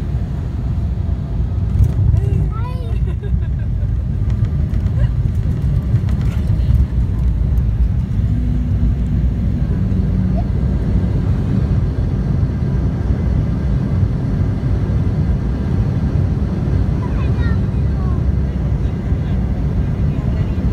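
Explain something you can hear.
Jet engines roar loudly and steadily inside an airliner cabin.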